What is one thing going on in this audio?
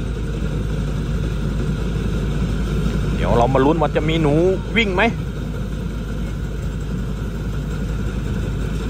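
A combine harvester engine rumbles steadily at a distance.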